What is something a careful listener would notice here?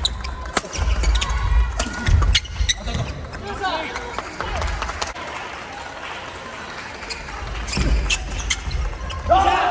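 Sneakers squeak and thud on a wooden floor.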